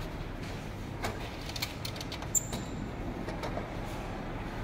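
A metal part slides out of a machine with clicks and scrapes.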